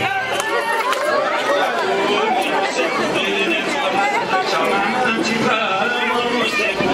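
A man claps his hands in rhythm.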